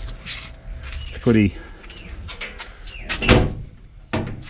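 A metal cabinet door clanks shut.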